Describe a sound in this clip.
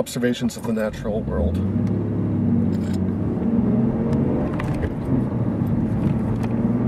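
A car engine hums and rises as the car drives off.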